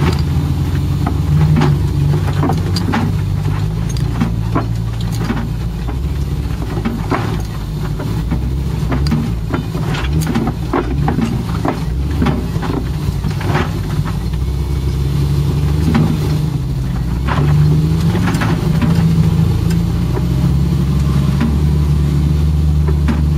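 An off-road vehicle's body rattles and knocks over bumpy ground.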